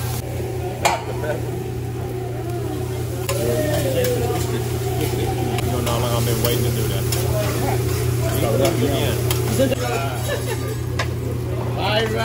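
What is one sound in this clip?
A metal spatula scrapes and taps on a hot griddle.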